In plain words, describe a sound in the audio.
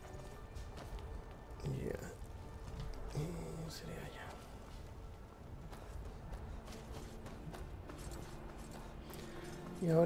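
Footsteps tread on stone at a steady pace.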